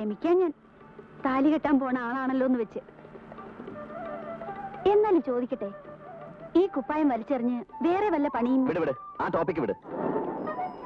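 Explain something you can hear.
A woman sings softly up close.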